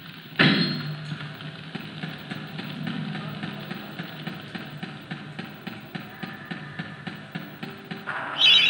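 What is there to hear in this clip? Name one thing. Footsteps patter quickly and evenly on stone.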